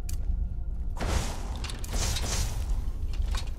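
Magic flames crackle and hiss loudly.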